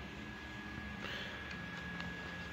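A book page rustles as it is turned.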